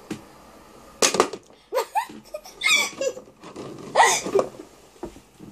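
Young girls laugh and shriek excitedly close by.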